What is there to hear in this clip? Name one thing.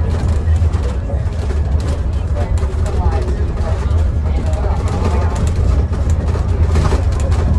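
A bus interior rattles and clatters over the road.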